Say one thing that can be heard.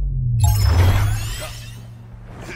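A loud whooshing blast bursts at the start.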